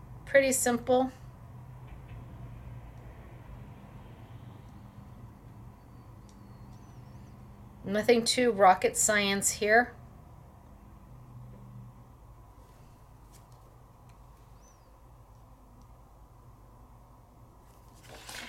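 A felt-tip marker squeaks and scratches softly on paper.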